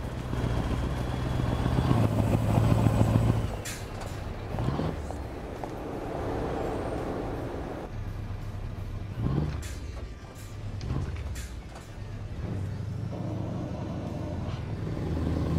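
A heavy truck engine drones steadily, its pitch rising and falling as it drives.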